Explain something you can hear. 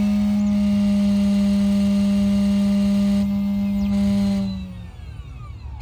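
A key cutting machine's motor hums steadily, then winds down.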